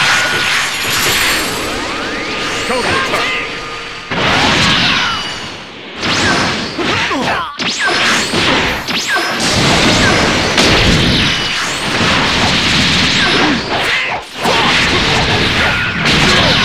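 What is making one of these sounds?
Energy blasts whoosh and explode in a fast fight.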